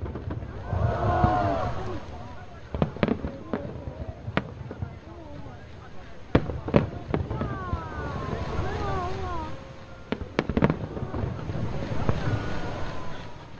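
Fireworks crackle and fizzle in the air.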